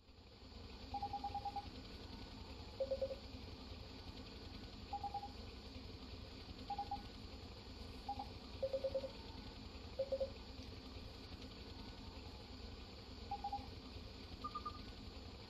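Soft electronic blips chime now and then.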